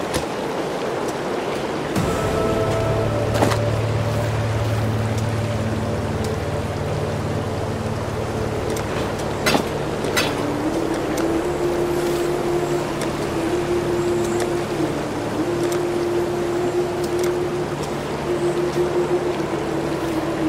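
Game music plays steadily with low droning tones.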